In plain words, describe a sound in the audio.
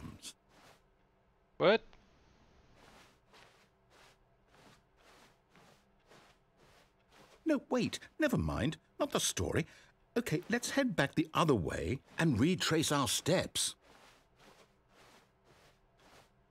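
Footsteps walk steadily at an even pace on a soft floor.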